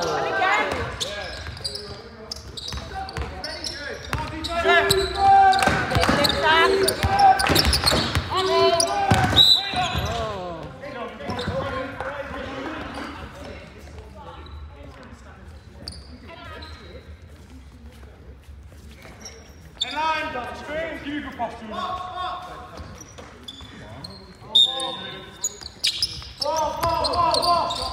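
Young men shout to each other during play.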